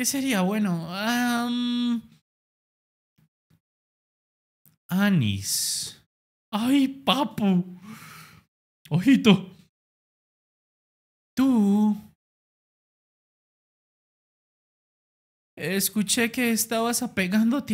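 A young man talks expressively into a close microphone, in short bursts with pauses.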